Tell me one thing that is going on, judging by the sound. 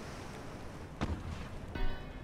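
A ship's gun fires with a loud boom.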